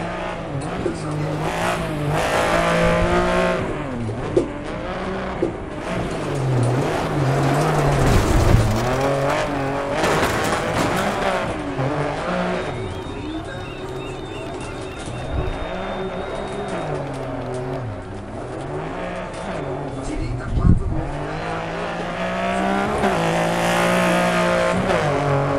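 A rally car engine revs hard, rising and falling as gears change.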